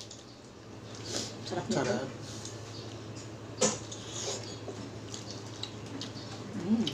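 Two women chew and smack their lips close to a microphone.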